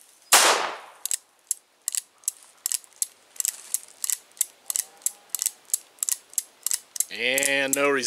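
A revolver's mechanism clicks as it is handled.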